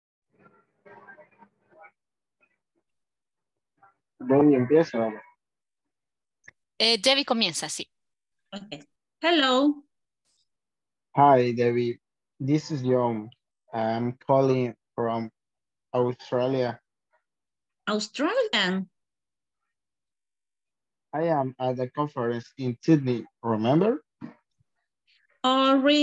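A woman speaks clearly through an online call, in short phrases with pauses.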